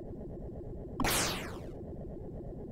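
An electronic zap sweeps quickly downward.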